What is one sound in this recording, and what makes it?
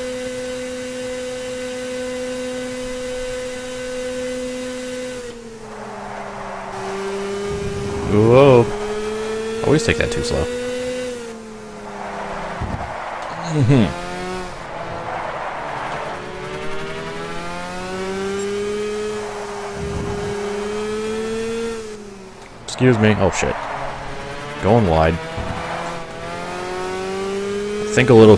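A small kart engine buzzes steadily, its pitch dropping and rising as it slows for corners and speeds up again.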